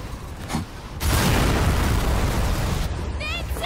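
An explosion booms and roars.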